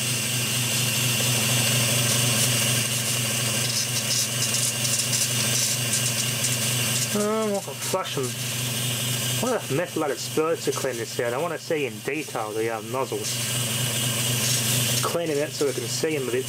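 An electric motor hums steadily.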